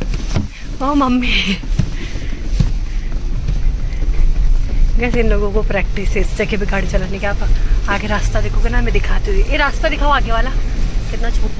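A man talks casually close by inside a car.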